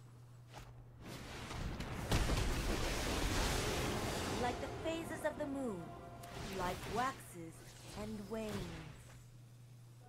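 A swelling magical whoosh rings out, followed by bright chiming tones.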